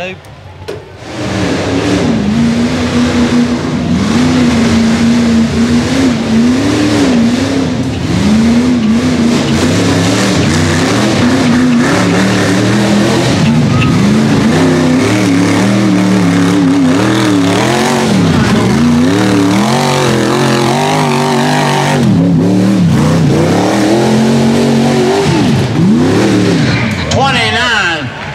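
A loud engine roars and revs hard, rising and falling in pitch.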